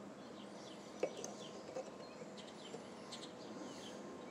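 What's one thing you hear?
A metal caliper clicks and taps against a metal sprocket.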